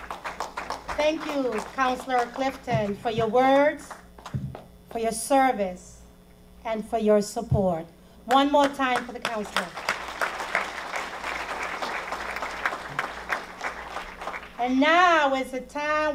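An elderly woman speaks with feeling into a microphone.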